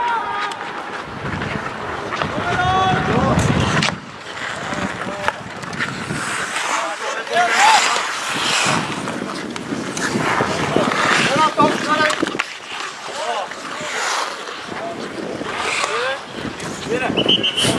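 Skates scrape and hiss across ice.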